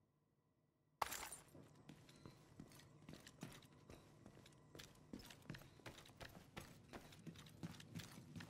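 Footsteps tread over a hard, littered floor.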